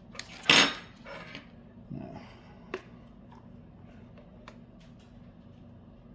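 A metal spoon clinks against plastic.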